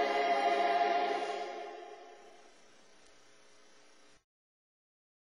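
A group of singers sings together into microphones, fading out.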